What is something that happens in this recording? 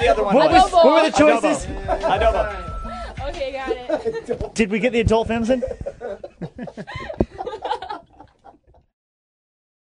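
Several young men laugh heartily together.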